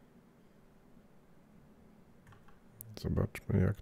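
A game menu clicks as an option is selected.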